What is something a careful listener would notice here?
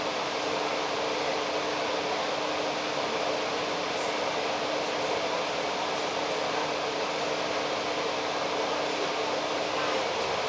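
A double-decker bus drives past close by.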